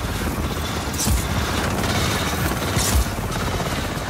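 A helicopter's rotor thumps close by.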